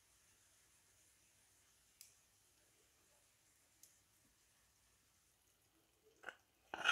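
Chicken sizzles softly in a hot pan.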